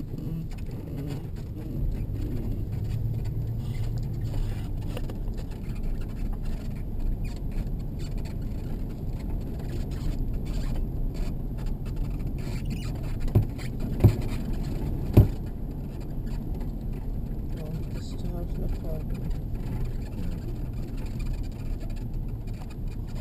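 Tyres crunch and rumble on a gravel road.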